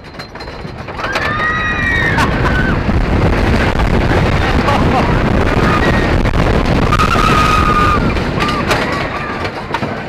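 Wind rushes loudly past riders.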